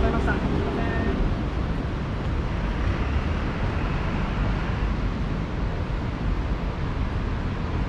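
Footsteps tap on paving stones.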